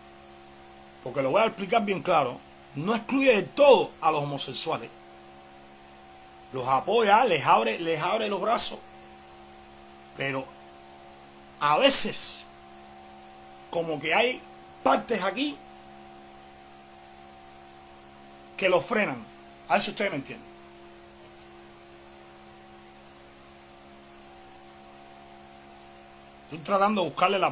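A man speaks with animation close to a microphone, in bursts with pauses.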